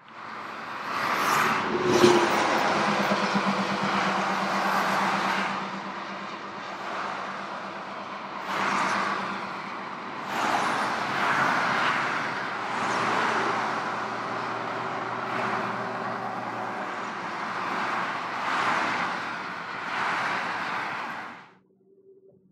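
Highway traffic rushes past steadily below, with cars swelling and fading as they pass.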